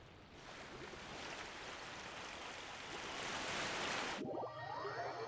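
A whirlpool roars with rushing water, growing louder.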